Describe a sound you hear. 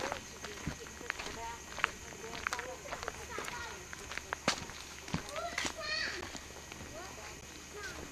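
A woman talks close by.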